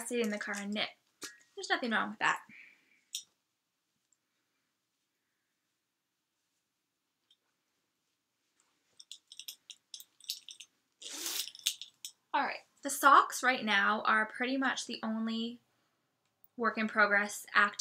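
A woman speaks calmly and close by, with pauses.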